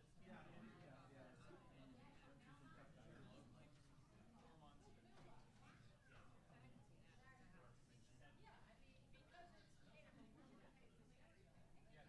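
A crowd of adults chats in a low murmur nearby.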